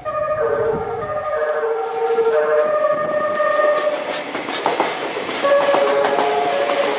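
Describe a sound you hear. An electric train pulls into a station, its motors whining in shifting tones.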